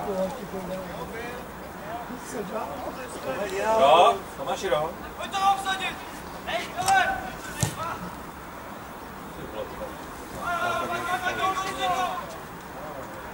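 Young men shout across an open field.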